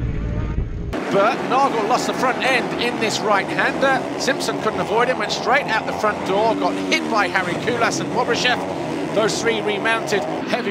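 Several dirt bike engines rev and whine.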